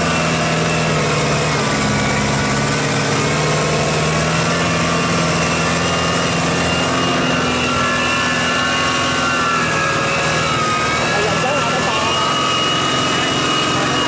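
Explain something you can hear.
Wet mud squelches and churns under the tractor's wheels and plough.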